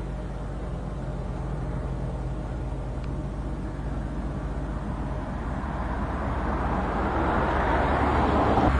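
Wind blows across open ground, growing stronger toward the end.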